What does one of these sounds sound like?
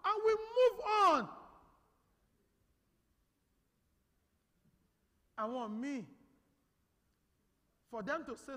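A man sings in short phrases through a microphone, echoing in a large hall.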